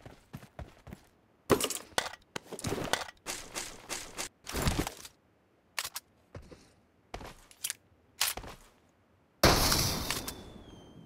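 Video game sound effects play in short, loud bursts.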